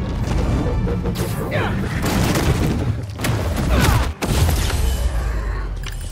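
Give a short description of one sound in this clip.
Heavy blows thud in a fight.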